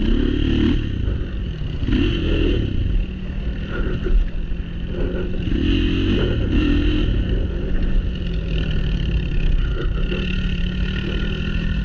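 Another motorcycle approaches from ahead.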